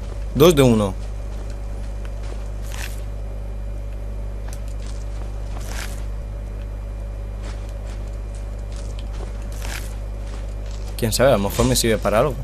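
Electricity crackles and buzzes softly.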